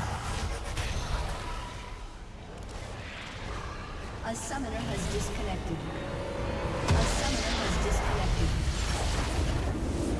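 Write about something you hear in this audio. Fantasy combat effects clash and crackle.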